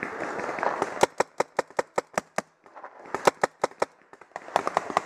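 A paintball marker fires rapid shots close by.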